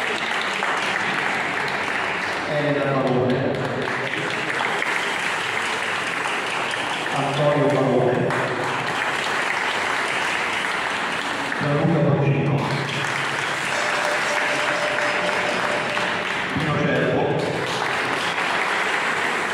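A small ensemble of plucked string instruments plays a lively tune in an echoing hall.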